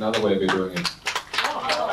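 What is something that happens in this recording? A man speaks through a microphone to an audience.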